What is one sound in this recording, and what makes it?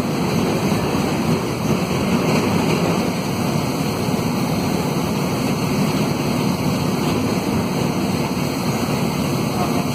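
A minibus diesel engine drones, heard from inside the cabin.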